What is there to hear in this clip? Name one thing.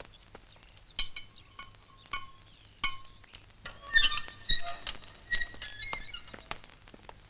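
A metal gate latch clanks and rattles.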